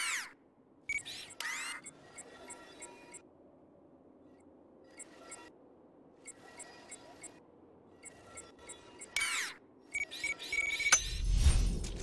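Soft electronic beeps and whooshes sound in short bursts.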